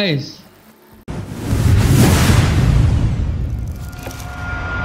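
A fiery blast whooshes and roars.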